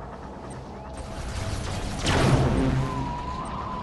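Guns fire and an explosion booms.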